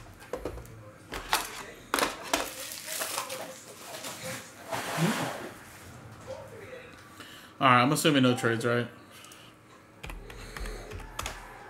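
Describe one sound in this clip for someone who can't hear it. Cards and plastic sleeves rustle and click in a man's hands.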